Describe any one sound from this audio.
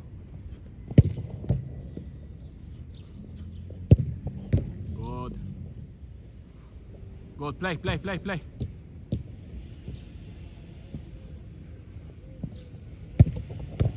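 A football is kicked hard with a sharp thump.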